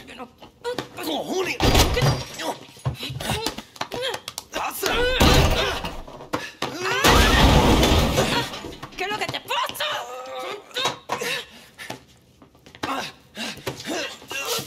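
Bodies scuffle and thump in a struggle.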